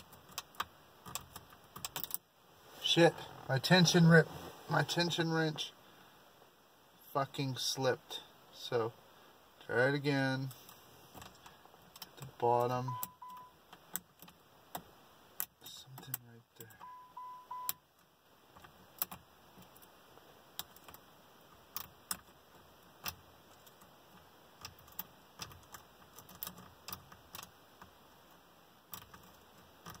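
Keys jingle and click against an ignition.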